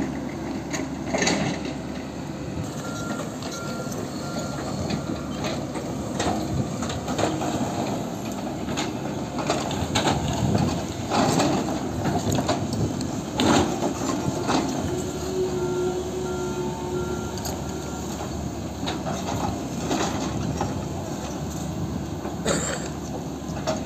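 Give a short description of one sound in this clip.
Excavator buckets scrape and knock against earth and rock.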